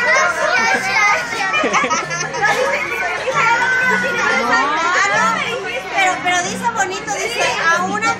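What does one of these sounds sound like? Young children speak excitedly.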